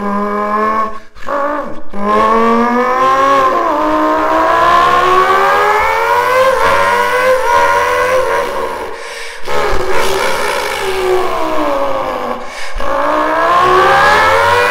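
A young man imitates a racing car engine with his mouth, the pitch rising and falling as if revving and shifting gears.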